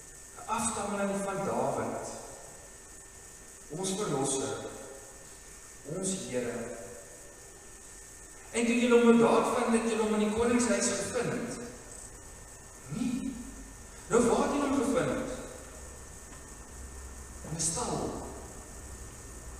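An elderly man speaks slowly and calmly into a microphone in an echoing room.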